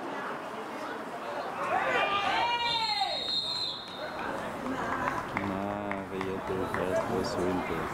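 Spectators talk quietly close by.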